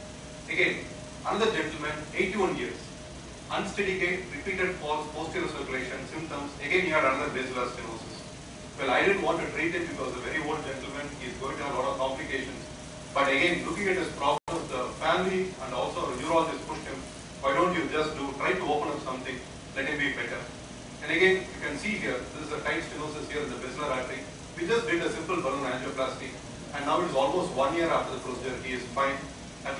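A man speaks steadily into a microphone, heard through a loudspeaker in an echoing hall.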